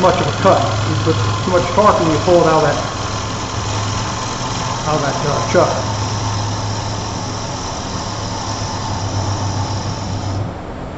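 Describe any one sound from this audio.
A wood lathe hums steadily as it spins.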